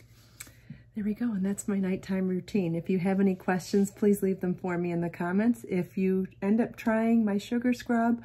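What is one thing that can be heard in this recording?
A middle-aged woman talks calmly and warmly, close to a microphone.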